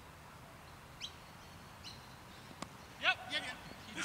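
A cricket bat knocks a ball.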